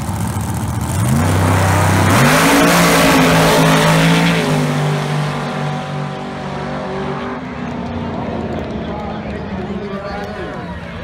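Car engines roar and rise sharply in pitch as the cars launch and speed away.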